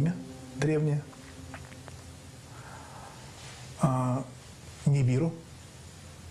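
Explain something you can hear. A middle-aged man speaks calmly into a close microphone, in short bursts with pauses.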